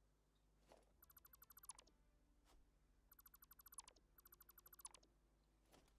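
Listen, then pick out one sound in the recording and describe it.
A building tool in a game makes quick bursts of rapid electronic ticks.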